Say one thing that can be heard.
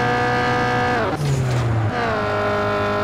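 A car engine's pitch drops briefly as it shifts gear.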